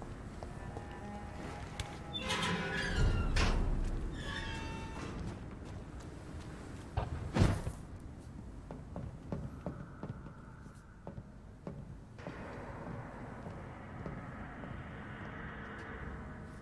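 Footsteps thud on hard ground and metal walkways.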